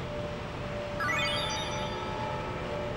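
A bright chime rises quickly.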